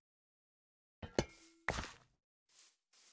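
A pickaxe chips and breaks a block with sharp clicks.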